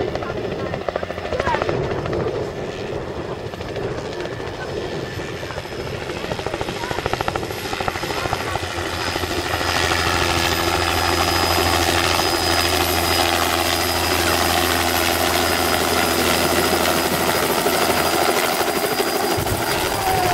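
A light turbine helicopter approaches and descends to land, its rotor thumping and its turbine whining, growing louder.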